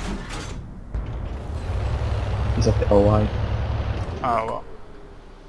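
A tank engine rumbles low.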